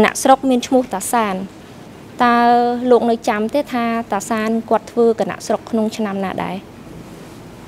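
A young woman speaks steadily into a microphone.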